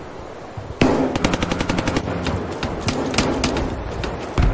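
Rapid gunshots crackle in quick bursts.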